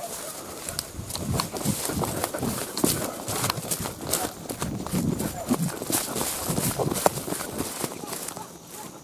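Footsteps swish and rustle through tall grass.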